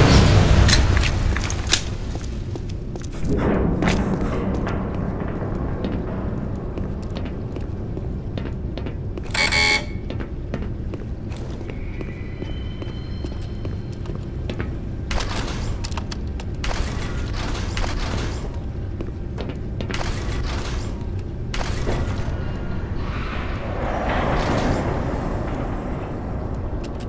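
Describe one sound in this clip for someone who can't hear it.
A low industrial hum drones steadily.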